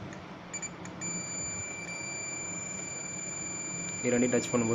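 A multimeter gives a steady high-pitched beep.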